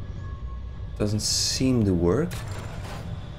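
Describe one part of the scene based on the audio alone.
A young man speaks briefly with animation into a headset microphone.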